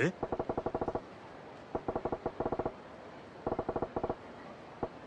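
Short electronic blips chatter in quick bursts, like text ticking out in a game.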